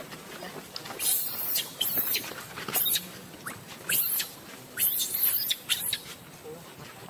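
Dry leaves rustle as monkeys scramble across the ground.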